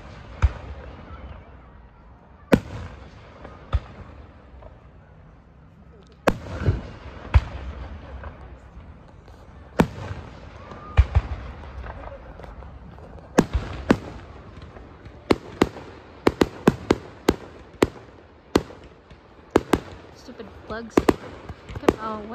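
Aerial firework shells boom outdoors in the distance.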